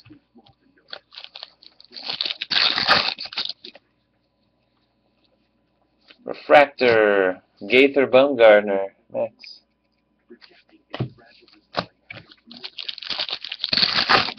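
Trading cards rustle and flick as hands shuffle them.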